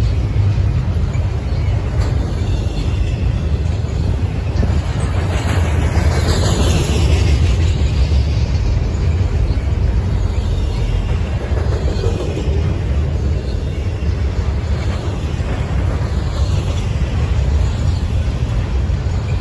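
Steel wheels clatter and squeal on the rails.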